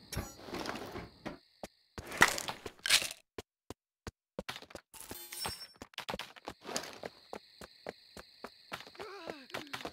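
Footsteps thud steadily on hard ground.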